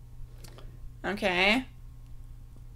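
A young woman makes a short, sharp vocal sound close by.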